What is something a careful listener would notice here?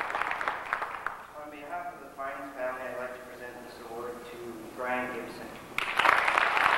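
A young man speaks through a microphone over a loudspeaker in an echoing hall.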